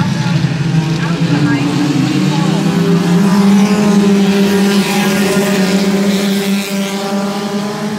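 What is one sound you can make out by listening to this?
Race car engines rise and fall in pitch as the cars pass close by.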